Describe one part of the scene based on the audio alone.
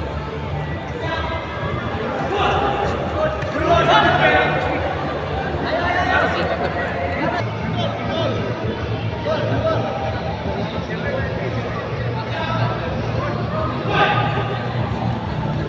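Men in a crowd shout and cheer loudly.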